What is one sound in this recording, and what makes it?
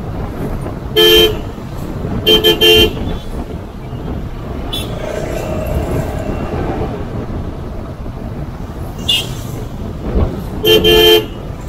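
Horns honk in short bursts.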